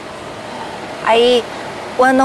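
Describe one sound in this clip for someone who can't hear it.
A young woman speaks with a questioning tone, close by.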